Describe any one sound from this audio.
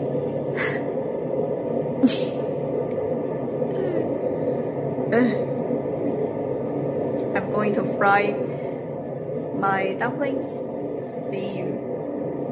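A young woman speaks softly and close by, in short bursts.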